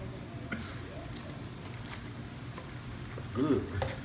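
A young man slurps a drink through a straw.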